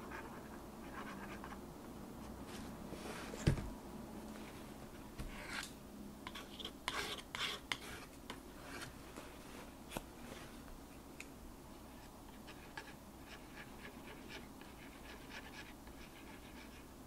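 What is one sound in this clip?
A knife scrapes and smears thick paint on paper.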